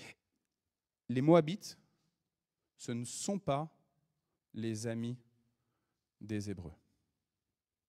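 A man speaks into a microphone in short, measured phrases with long pauses.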